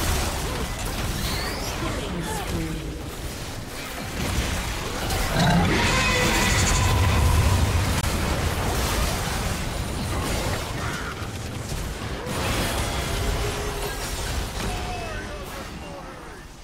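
Spell effects and weapon strikes crash and whoosh in a fast game battle.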